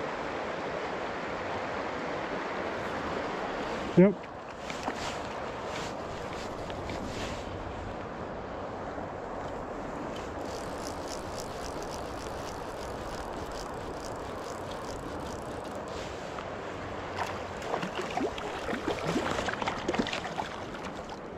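A river flows and gurgles steadily close by.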